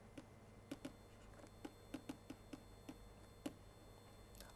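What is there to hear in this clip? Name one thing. A pen taps softly on a writing tablet.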